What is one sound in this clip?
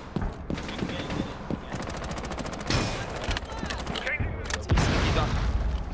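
Gunfire rings out in short bursts.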